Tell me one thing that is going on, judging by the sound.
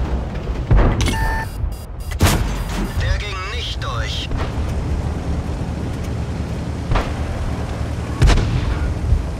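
Tank cannons fire with sharp booms.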